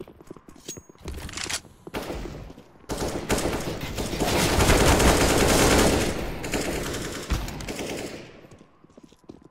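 Rapid rifle gunfire rattles in short bursts.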